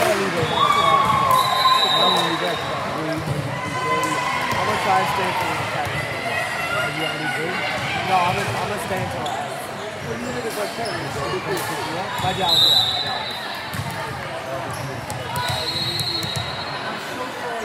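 Shoes squeak sharply on the gym floor.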